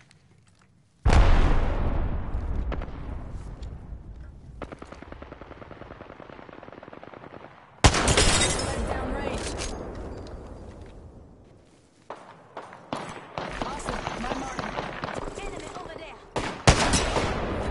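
A sniper rifle fires loud, echoing shots.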